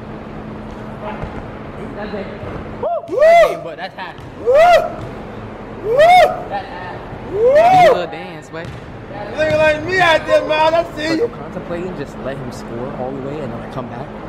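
A young man talks excitedly, close by.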